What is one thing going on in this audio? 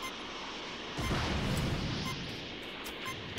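A crackling energy burst whooshes and roars.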